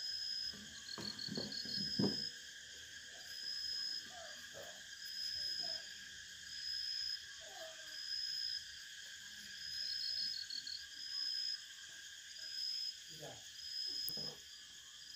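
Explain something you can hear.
A wooden base knocks as a telescope is handled.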